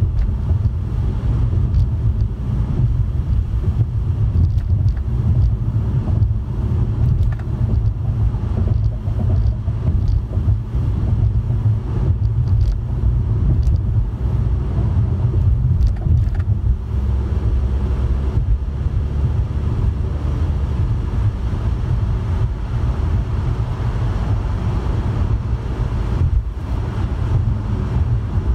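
Tyres roll steadily on the motorway surface.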